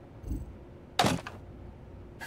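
A metal case latch clicks open with a sharp clank.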